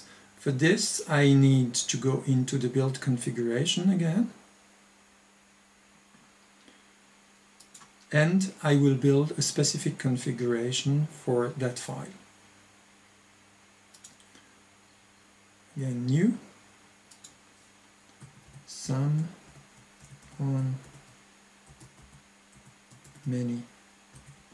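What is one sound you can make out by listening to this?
A middle-aged man talks calmly and close to a microphone, in short bursts with pauses.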